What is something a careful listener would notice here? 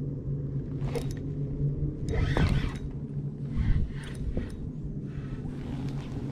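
A fishing reel whirs and clicks as line is wound in.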